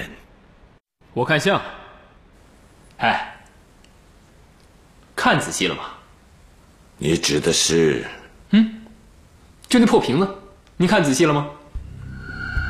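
A young man answers with animation, close by.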